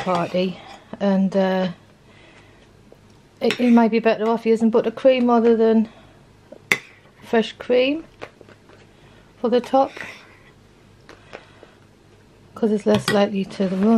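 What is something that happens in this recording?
A spoon scrapes softly through thick cream in a bowl.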